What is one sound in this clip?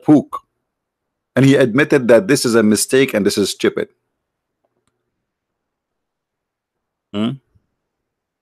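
A man speaks with animation in short bursts.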